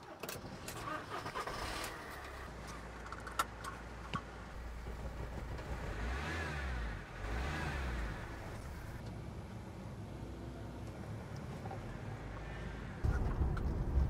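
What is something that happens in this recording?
A van engine starts and idles steadily.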